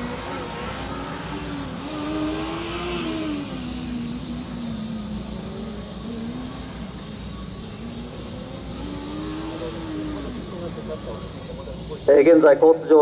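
Small engines buzz and rev in the distance.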